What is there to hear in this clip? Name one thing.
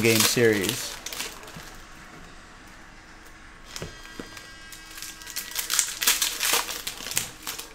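Cardboard and plastic packs rustle and crinkle as hands handle them.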